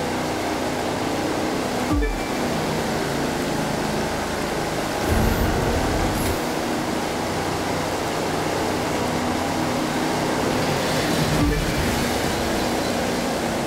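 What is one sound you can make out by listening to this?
Water splashes and hisses against a speeding boat's hull.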